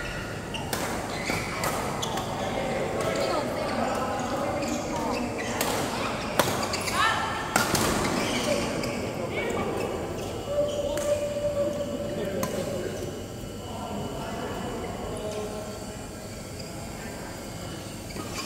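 Voices of men and women chatter in the background of a large echoing hall.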